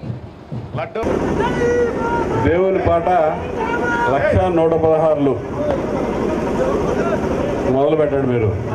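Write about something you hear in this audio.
An elderly man speaks loudly through a microphone and loudspeakers.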